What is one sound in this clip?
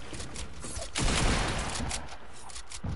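A wall shatters with a loud crash.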